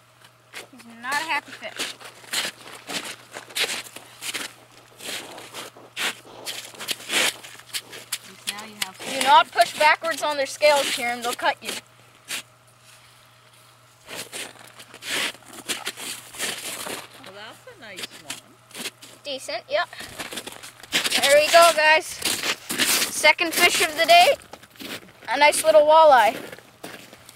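A boy talks with excitement close by.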